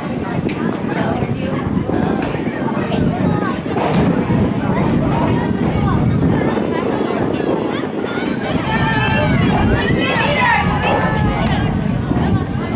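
A soccer ball thumps off a foot.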